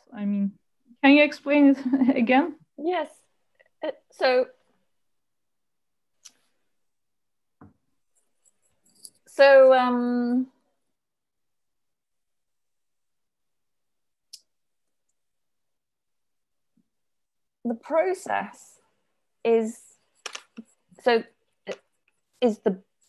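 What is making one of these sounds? A middle-aged woman speaks calmly over an online call, with long pauses.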